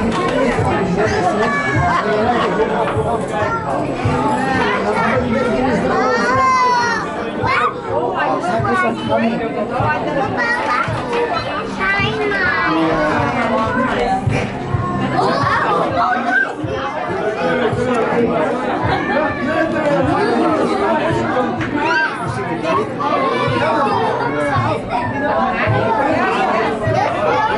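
A crowd of adults and children chatters all around in an echoing space.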